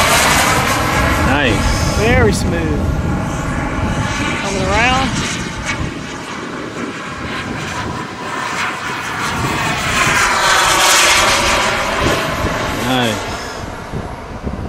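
A jet engine roars and whines loudly as a small jet flies past overhead, its pitch rising and then falling.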